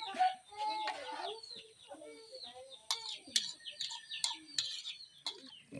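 A metal spoon scrapes and clinks against a metal pan.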